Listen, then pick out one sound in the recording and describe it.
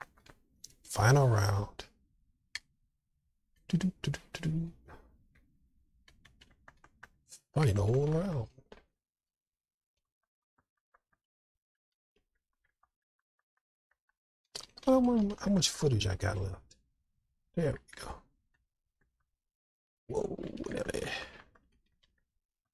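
A man speaks with animation into a headset microphone, in short bursts.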